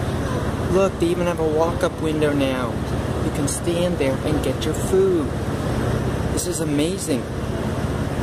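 A woman talks at a service window, close by.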